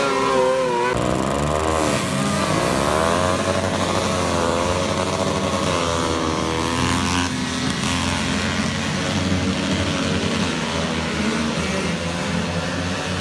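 Several small engines rev up and down, rising and falling in pitch.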